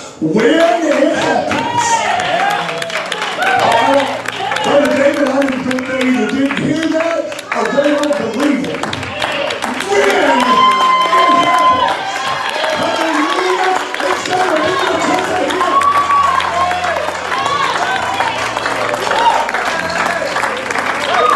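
A man sings energetically into a microphone through loudspeakers in an echoing hall.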